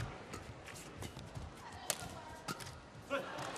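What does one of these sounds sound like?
A racket hits a shuttlecock with sharp pops.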